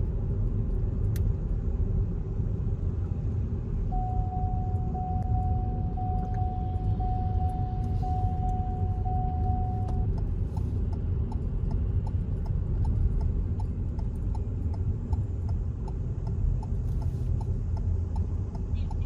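A car engine hums steadily with a low road rumble from inside a moving car.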